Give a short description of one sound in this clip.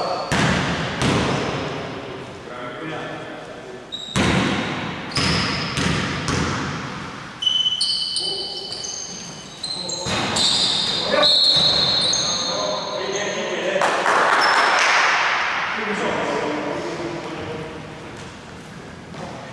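Men shout to each other across the court.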